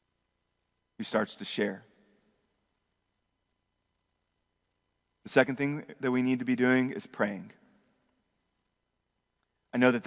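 A young man speaks calmly to an audience through a microphone, with pauses.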